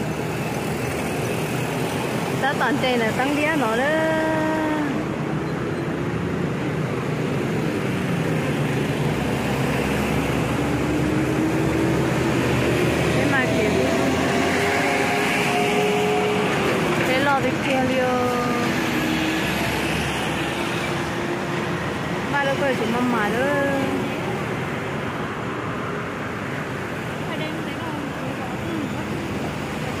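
A vehicle engine rumbles steadily while driving through traffic.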